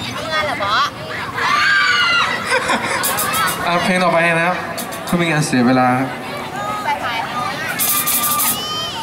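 Children chatter and shout excitedly close by, outdoors.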